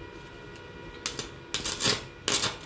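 An electric welder crackles and sputters in short bursts.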